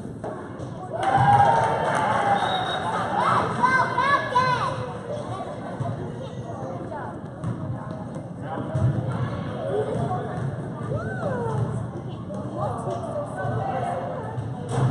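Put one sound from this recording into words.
Children shout and squeal excitedly nearby.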